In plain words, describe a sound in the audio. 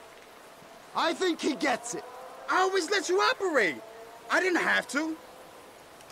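A man pleads and talks fearfully.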